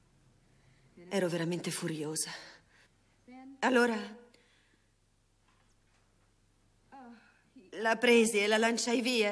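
A woman speaks tearfully into a microphone, her voice breaking.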